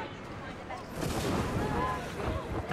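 A cloud of dust bursts with a soft whoosh.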